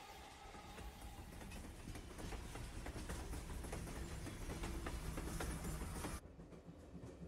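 A train rumbles along the tracks, wheels clicking over rail joints.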